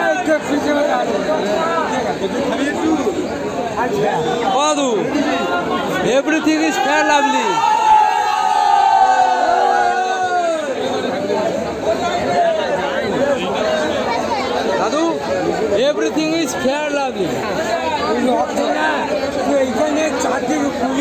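A crowd of men talk and shout all around, close by and outdoors.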